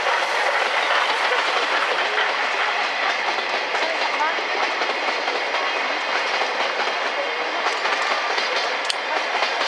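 A long train rumbles steadily along the tracks in the distance.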